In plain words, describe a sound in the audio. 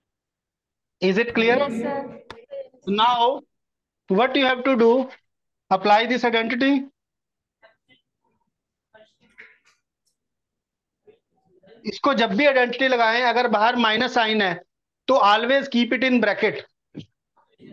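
A man lectures with animation through a microphone.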